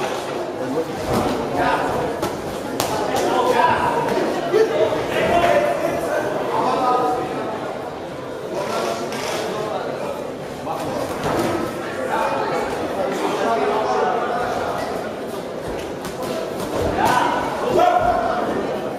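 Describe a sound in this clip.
Boxing gloves thud against a boxer's body and head.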